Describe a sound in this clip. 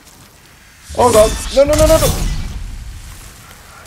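A heavy blast bursts with a roar.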